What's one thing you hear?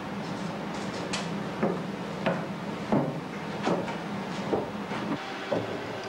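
Footsteps climb wooden stairs.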